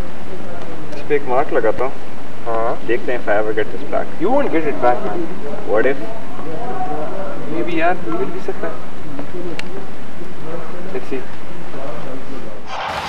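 A young man talks quietly outdoors.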